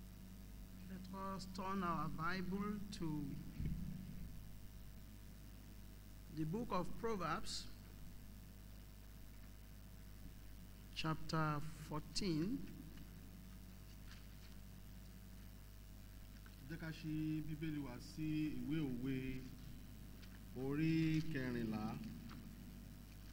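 An elderly man reads aloud through a microphone, in short bursts with pauses.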